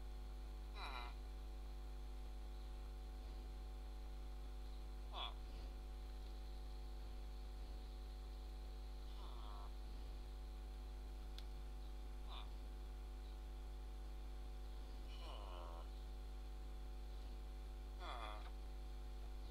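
A game villager grunts with short nasal murmurs now and then.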